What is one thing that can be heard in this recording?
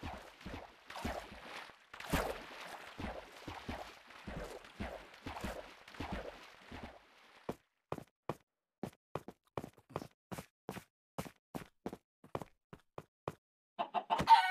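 Footsteps crunch over gravel and stone.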